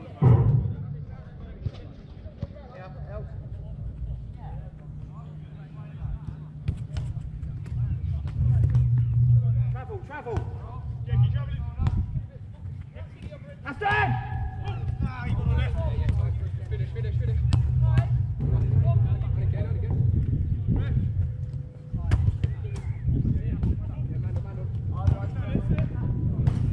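Men shout to each other on an outdoor pitch.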